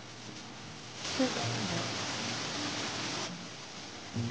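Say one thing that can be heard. Rain falls steadily outdoors at night.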